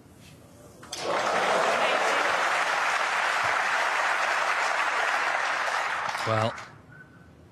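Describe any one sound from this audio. A crowd applauds loudly in a large hall.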